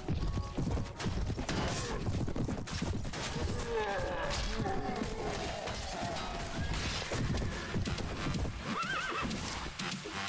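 Weapons clash and thud in a battle.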